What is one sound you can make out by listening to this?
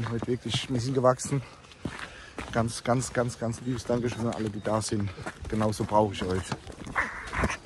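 A young man talks animatedly and close up.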